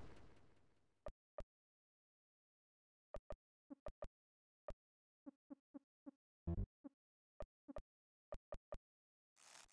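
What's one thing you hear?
Short electronic menu beeps click one after another.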